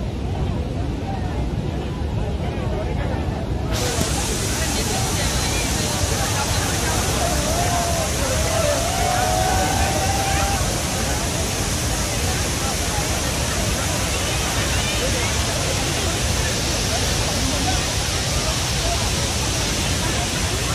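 Water roars loudly as it thunders down a dam spillway.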